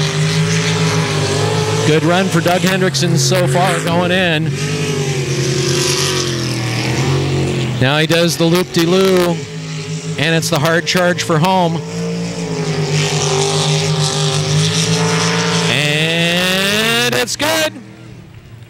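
Water sprays and hisses behind a speeding boat.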